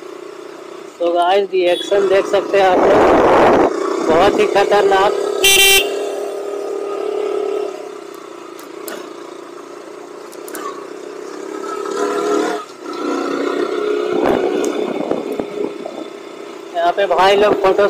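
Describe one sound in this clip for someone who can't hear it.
A single-cylinder motorcycle engine hums while riding at low speed.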